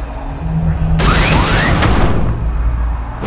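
A rocket jet blasts with a loud whoosh.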